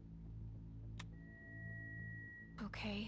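A button press sets off a steady electronic beep.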